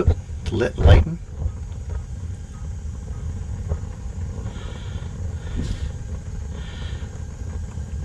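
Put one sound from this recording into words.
Gas flames burn with a soft, steady rushing.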